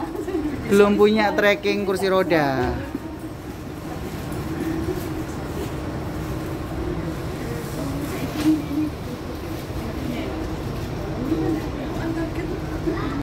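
A train carriage rumbles steadily while moving.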